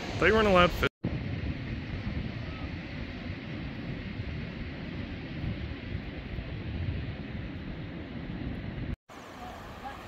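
Shallow water laps gently against stones.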